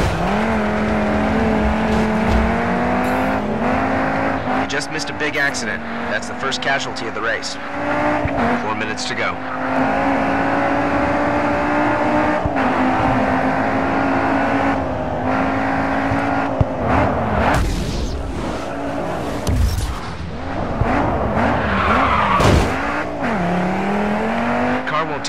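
A car engine roars and revs up and down through gear changes.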